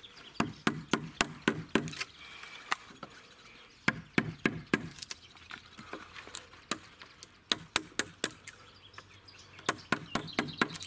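A wood chisel scrapes and peels softened paint from wood.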